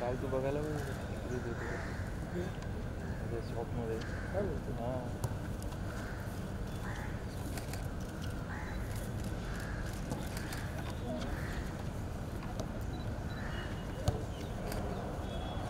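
A football thuds as it is kicked on grass.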